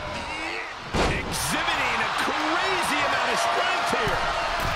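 A large crowd roars louder after the slam.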